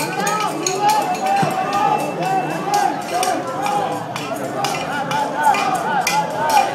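A crowd of people shouts and chatters excitedly outdoors.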